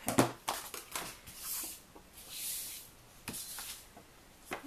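Cardstock slides across a cutting mat.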